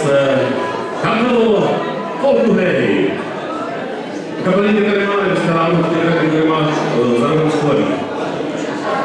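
Men sing together into microphones.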